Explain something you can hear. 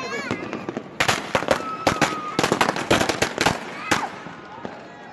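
Fireworks crackle and bang sharply close by.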